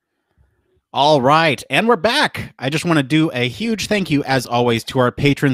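A man speaks with animation into a microphone, heard over an online call.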